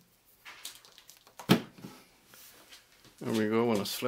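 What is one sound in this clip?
A plastic battery clicks and knocks as it is pulled from a cordless drill and set down.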